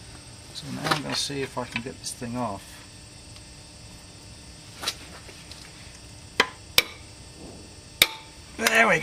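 A ratchet wrench clicks and knocks against metal.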